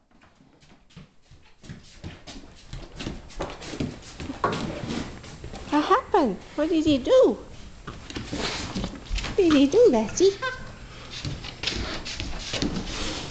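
A dog's claws click on a wooden floor.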